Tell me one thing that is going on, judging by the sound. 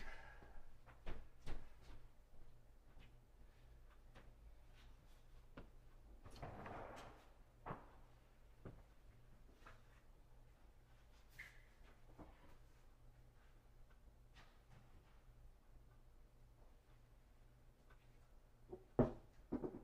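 Light knocks and taps sound on a table.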